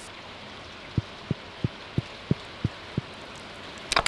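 Footsteps tap lightly on wood.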